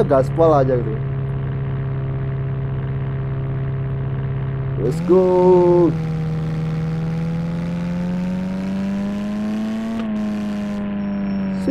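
A van engine hums steadily and slowly revs up as the van speeds along.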